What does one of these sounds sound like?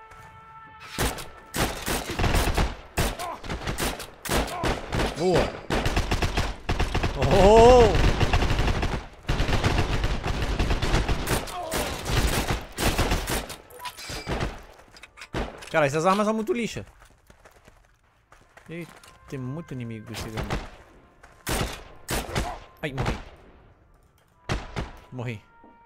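Rifle shots crack in rapid, sharp bursts.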